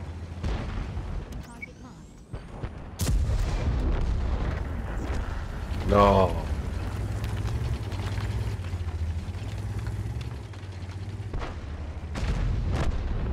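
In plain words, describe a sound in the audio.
Tank tracks clatter over cobblestones.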